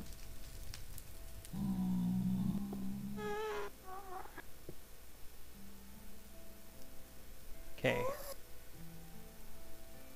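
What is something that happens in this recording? Lava bubbles and pops softly.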